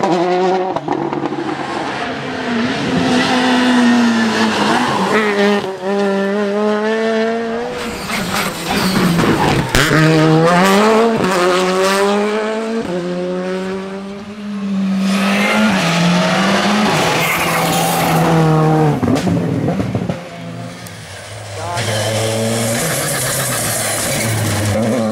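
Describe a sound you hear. Rally car engines roar loudly, revving and shifting gears as the cars speed past.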